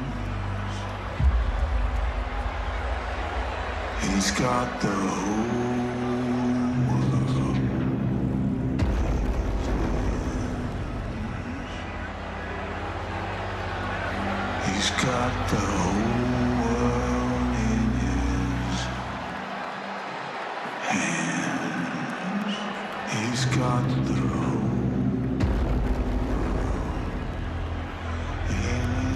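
A large crowd cheers in a vast echoing arena.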